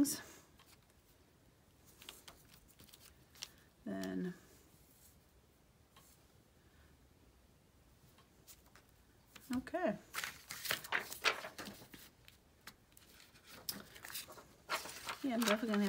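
Plastic stamps click and rustle as they are handled.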